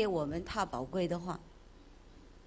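Two women sing together into a microphone and stop abruptly.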